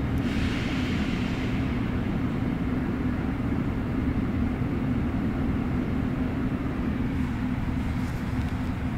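A London Underground train rumbles through a tunnel, heard from inside the carriage.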